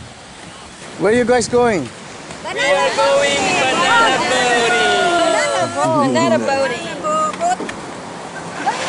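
Several women talk and laugh excitedly close by.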